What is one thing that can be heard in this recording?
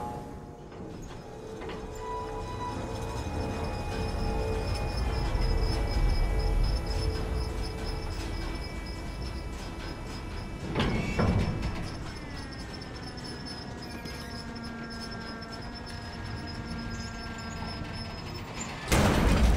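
An electric crane hoist whines as it lowers a shipping container.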